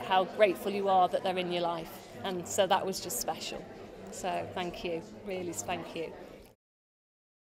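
A middle-aged woman speaks with animation, close to a microphone.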